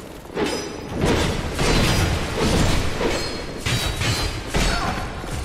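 Fire bursts and crackles loudly.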